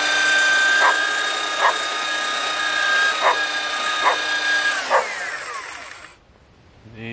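An electric device whines with a steady high tone, then winds down.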